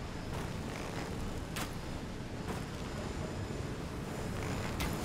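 Flames burst and roar.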